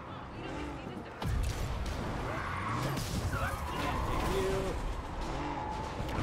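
A car crashes and crunches metal.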